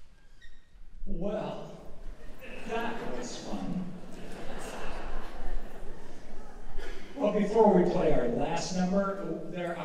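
A man speaks calmly into a microphone over loudspeakers in a large hall.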